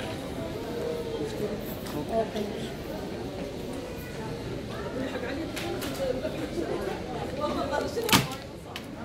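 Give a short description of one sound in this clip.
Voices murmur faintly in a large echoing hall.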